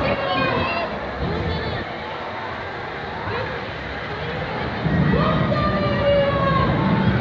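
A crowd of young riders screams and shrieks on a swinging fairground ride.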